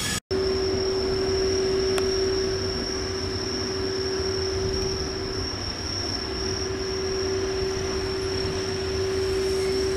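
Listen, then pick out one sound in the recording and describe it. Train wheels rumble low and steadily on the rails.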